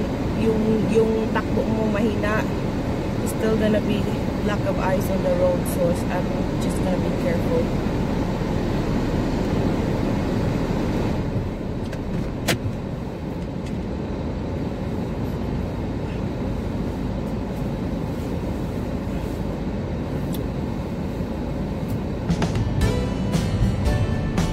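A car engine idles with a steady low rumble.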